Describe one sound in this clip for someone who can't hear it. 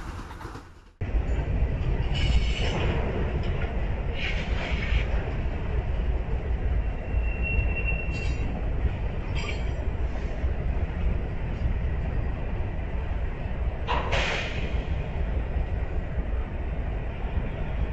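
A freight train rumbles steadily past on the tracks.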